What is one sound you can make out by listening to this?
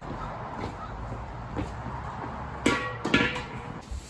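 A metal gas tank clanks as it is set down.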